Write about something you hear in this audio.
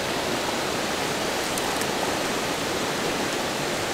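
A child splashes into shallow water.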